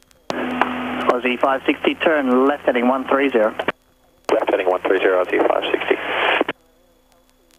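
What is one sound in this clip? A young man speaks calmly over a headset radio.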